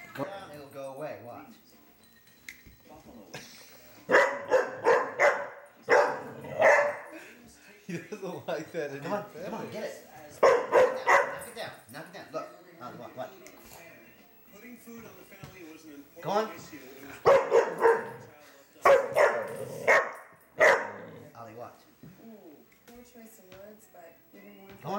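A man talks excitedly to a dog close by.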